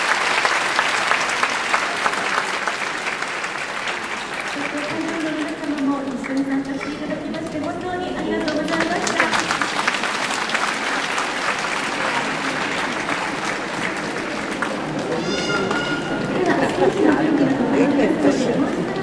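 A large audience of children chatters and cheers in a big echoing hall.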